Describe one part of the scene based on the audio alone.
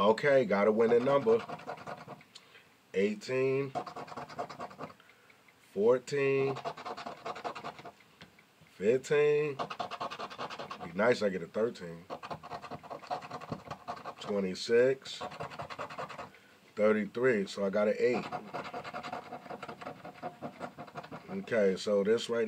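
A scratch-off ticket is scratched with quick, rasping strokes.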